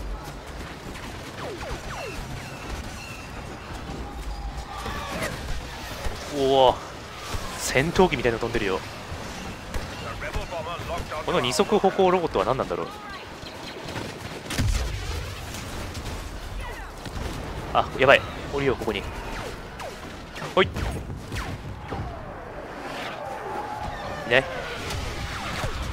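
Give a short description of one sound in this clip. Blaster rifles fire in short bursts of zapping shots.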